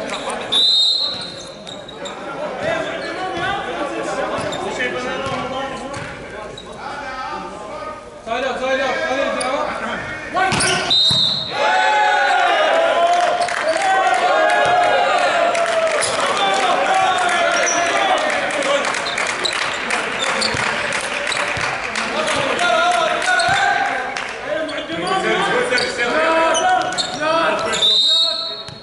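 A volleyball is smacked hard by hands.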